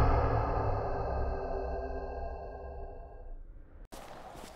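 A deep explosion rumbles and slowly fades away.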